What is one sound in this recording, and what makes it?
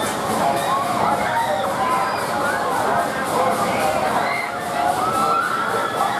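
A fairground ride's arm whooshes as it swings through the air.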